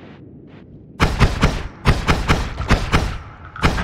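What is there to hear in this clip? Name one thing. Game magic bolts zap repeatedly in quick bursts.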